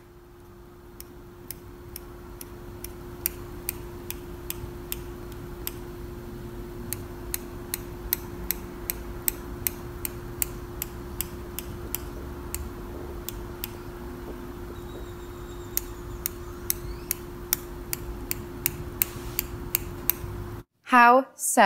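Small scissors snip repeatedly at soft dough.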